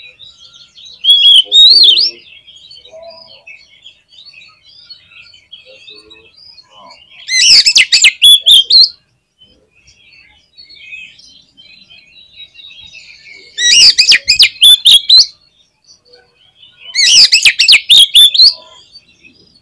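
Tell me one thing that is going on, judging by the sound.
A songbird sings loud, rich bursts of whistling phrases close by.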